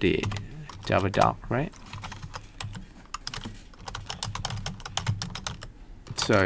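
A keyboard clicks with quick typing.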